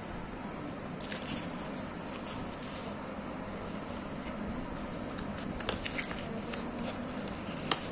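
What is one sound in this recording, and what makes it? Fingers slide and tap against a cardboard box.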